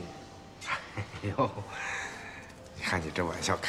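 A man laughs, close by.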